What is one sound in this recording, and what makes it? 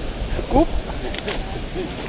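A fish splashes into water below.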